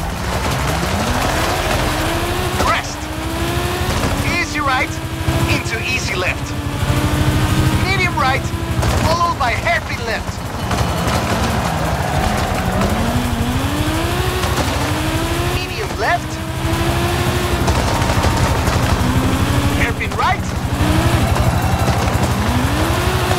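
A race car engine revs hard and climbs through the gears again and again.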